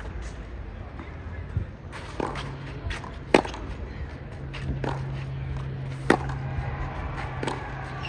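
Tennis shoes scuff and slide on a clay court.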